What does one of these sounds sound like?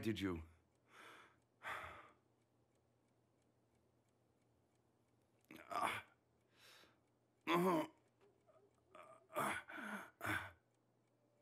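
A middle-aged man groans and gasps in pain close by.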